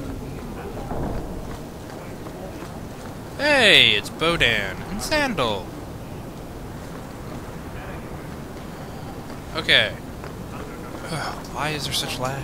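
Footsteps run across stone paving.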